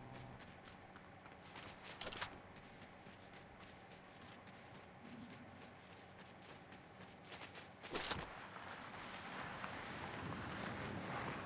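Quick footsteps crunch on snow.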